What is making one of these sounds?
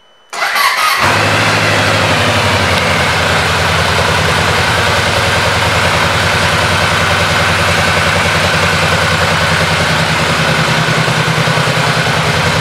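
A motorcycle engine starts and idles with a deep, steady rumble close by.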